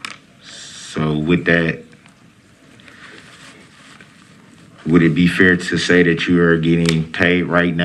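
A young man speaks calmly through a microphone in a room.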